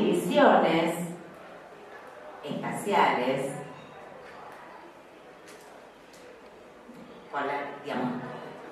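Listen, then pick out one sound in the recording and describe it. A woman speaks calmly into a microphone, heard through a loudspeaker in a room.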